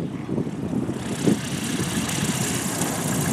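A small propeller plane roars past close by on landing.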